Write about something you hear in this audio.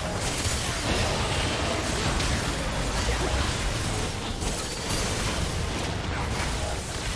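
Spell effects and attacks crackle and blast in a fast video game fight.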